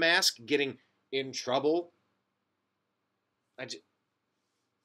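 A man speaks animatedly and close up into a microphone.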